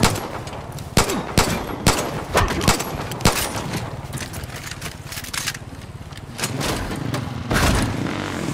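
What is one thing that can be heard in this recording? Pistol shots crack in quick succession.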